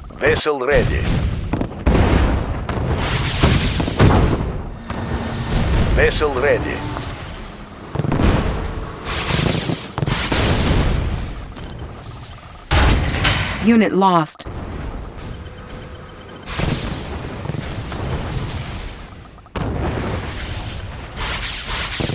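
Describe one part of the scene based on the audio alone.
Explosions boom and rumble repeatedly.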